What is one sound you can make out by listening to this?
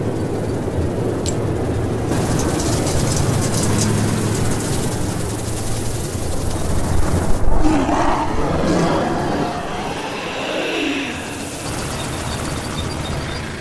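A swarm of insects buzzes loudly.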